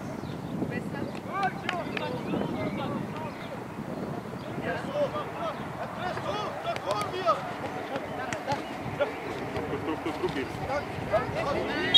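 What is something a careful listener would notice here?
Teenage boys shout to each other far off across an open field.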